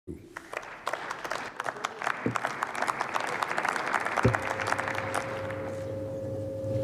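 A crowd applauds in a large echoing hall.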